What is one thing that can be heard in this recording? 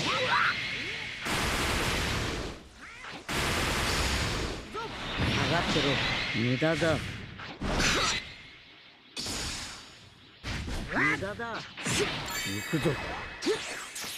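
Game blasts and impacts burst out in quick bursts.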